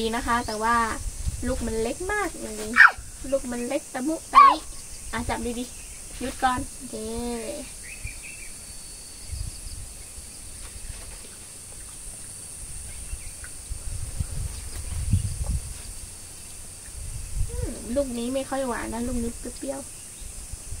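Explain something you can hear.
A young woman talks gently and playfully up close.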